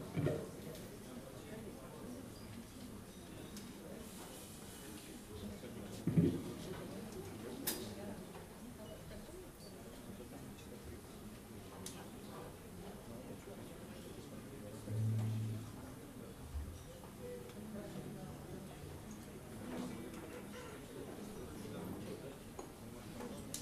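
A jazz band plays live.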